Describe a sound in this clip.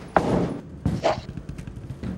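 A bowling ball rolls along a wooden lane.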